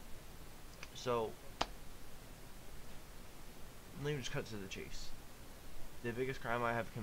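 A young man speaks softly and close into a microphone, in short bursts.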